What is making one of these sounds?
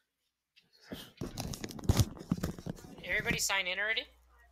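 Headphones are set down on a table with a rustle and a clatter.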